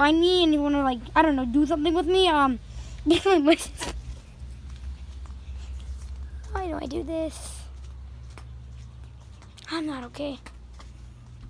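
A young boy talks in a playful sing-song voice close by.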